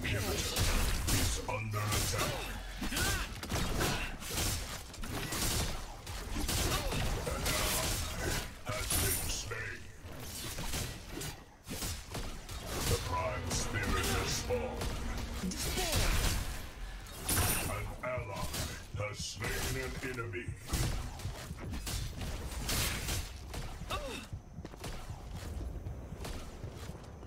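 Blades slash and clang repeatedly in a fast fight.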